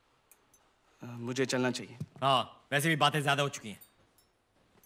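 A young man speaks firmly nearby.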